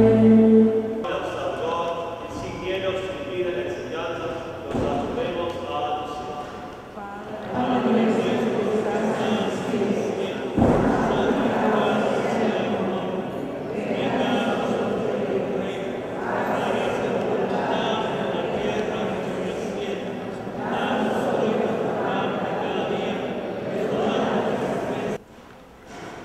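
Two men chant together in a large echoing hall.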